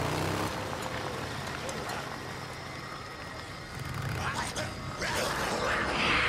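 A motorbike engine rumbles.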